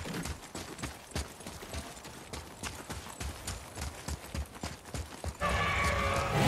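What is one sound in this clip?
Heavy footsteps run quickly over hard ground.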